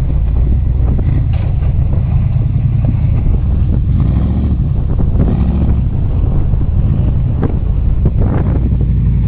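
An off-road buggy engine roars and rumbles close by.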